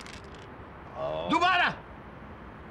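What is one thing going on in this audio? A middle-aged man speaks with surprise close by.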